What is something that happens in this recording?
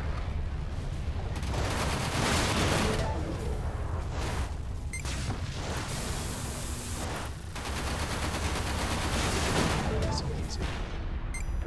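Laser guns fire in rapid bursts of sharp zaps.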